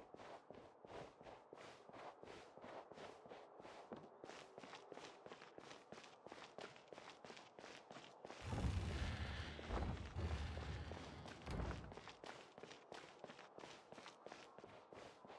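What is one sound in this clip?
Quick footsteps patter steadily on a hard floor.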